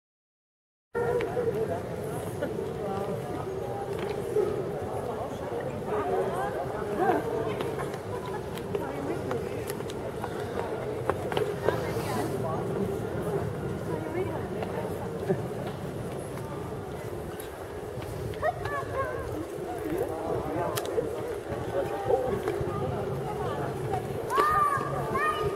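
Children shout and squeal excitedly outdoors.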